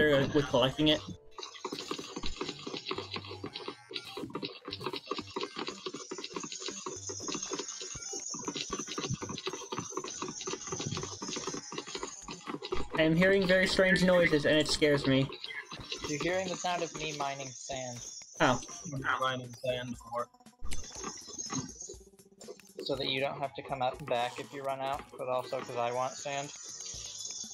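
Digging and game effects clatter and chime.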